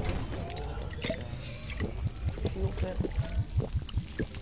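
A magical chest hums with a rising, shimmering chime.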